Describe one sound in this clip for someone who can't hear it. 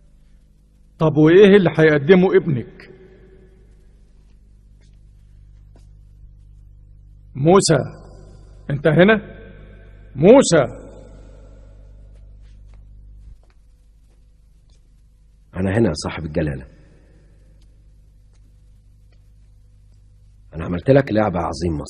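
An elderly man speaks forcefully and slowly, in short bursts.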